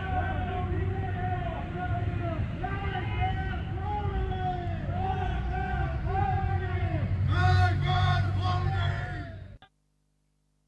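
A crowd of young men chants loudly in unison outdoors.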